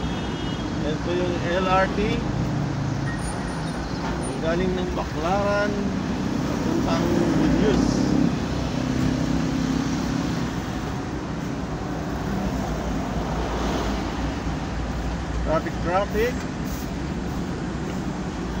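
Traffic hums all around on a busy road.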